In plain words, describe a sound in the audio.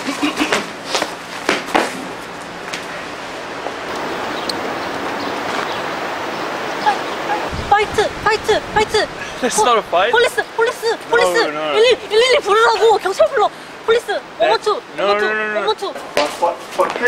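A young woman speaks excitedly and pleads nearby.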